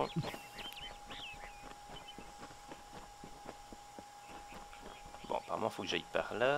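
Footsteps run quickly over grass and then stone.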